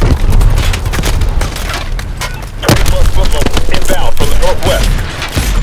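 A heavy machine gun fires in rapid, booming bursts.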